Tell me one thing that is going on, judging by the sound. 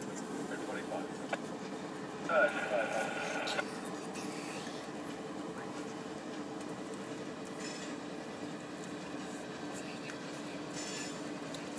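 A freight train rolls slowly by in the distance with a low, steady rumble.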